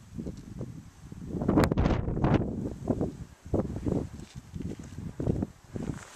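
Strong wind gusts buffet the microphone outdoors.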